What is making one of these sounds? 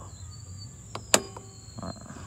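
A plastic cover clicks into place.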